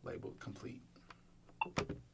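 A finger presses a phone button with a soft click.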